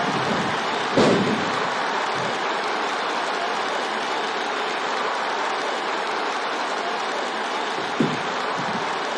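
A body slams onto the wrestling ring mat with a heavy thud.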